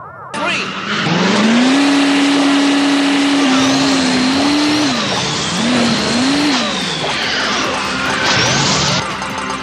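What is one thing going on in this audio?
A truck engine revs and roars, rising and falling in pitch.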